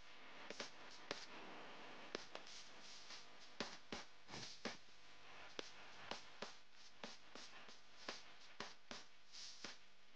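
A quilted bag rustles and creaks on a crinkly plastic sheet as hands handle it.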